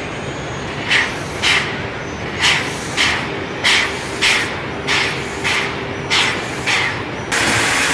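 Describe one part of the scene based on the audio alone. A steam locomotive chuffs in loud, rhythmic puffs.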